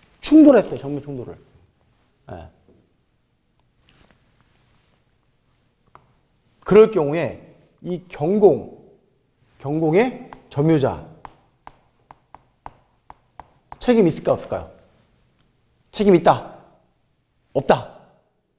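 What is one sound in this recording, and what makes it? A young man speaks with animation, in short bursts with pauses, close to a microphone.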